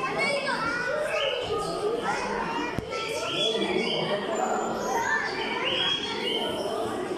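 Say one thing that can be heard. Young children chatter and call out loudly in an echoing hall.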